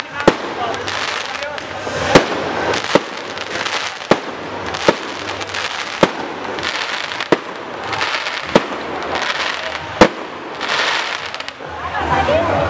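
Fireworks crackle and fizzle in the sky.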